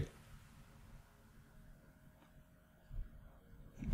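A game card lands on a board with a soft thump.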